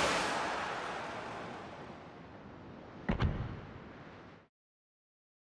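Sea waves wash and lap.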